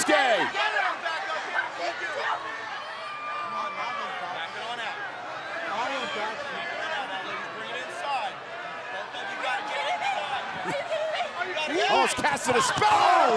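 A large crowd cheers and shouts in a big echoing arena.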